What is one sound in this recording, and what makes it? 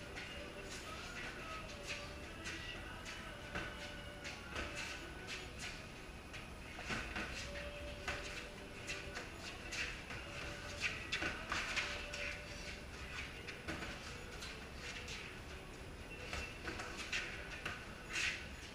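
Sneakers squeak and scuff on a concrete floor.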